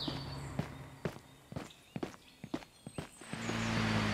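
Footsteps tap on asphalt.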